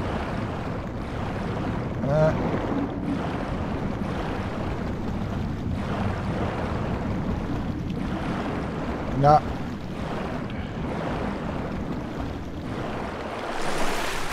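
Water rushes in a steady, muffled underwater wash.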